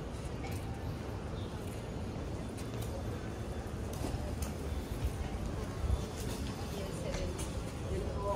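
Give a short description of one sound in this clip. Footsteps tap on a pavement outdoors.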